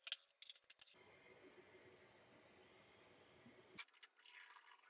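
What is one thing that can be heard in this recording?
Liquid pours and trickles into a bottle.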